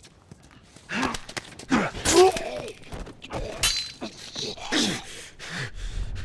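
Two bodies scuffle and thump against each other.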